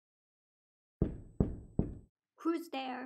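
Knuckles knock on a door.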